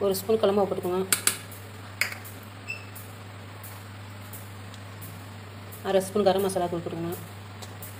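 A spoon clinks against a metal bowl.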